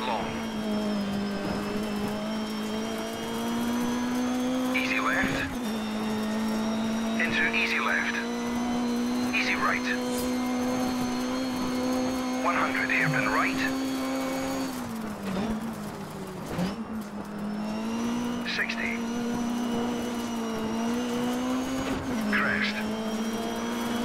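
A car engine drones at high revs, dropping in pitch briefly as it slows and shifts gears.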